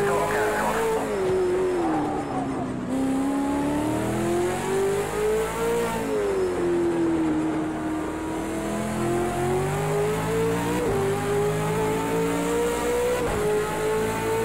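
A racing car engine roars steadily, its pitch rising and falling as gears shift.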